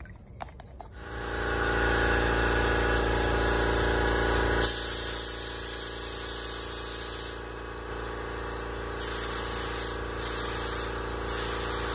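A spray gun hisses in bursts.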